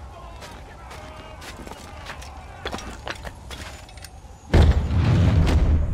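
Footsteps run quickly over the ground.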